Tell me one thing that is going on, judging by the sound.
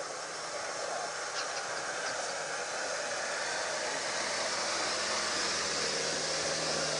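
A vehicle's engine rumbles as it drives slowly closer.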